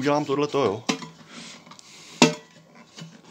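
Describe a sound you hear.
A plastic part clicks and knocks as it is handled.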